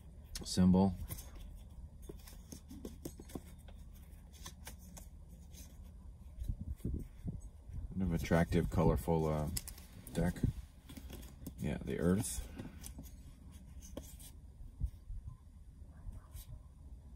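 Playing cards rustle and slide in hands.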